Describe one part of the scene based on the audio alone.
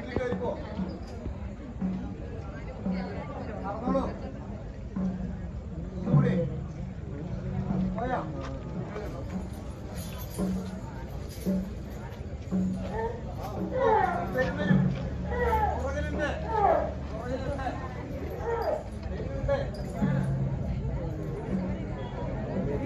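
A crowd of men and women talks and murmurs close by.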